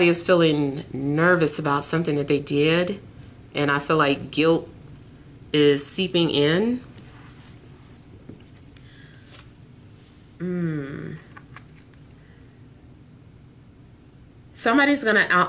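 A woman speaks calmly and close to the microphone, with pauses.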